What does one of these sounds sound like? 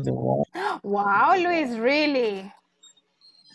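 A woman talks through an online call.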